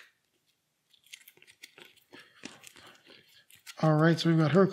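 Plastic game cards rustle and click as they are handled.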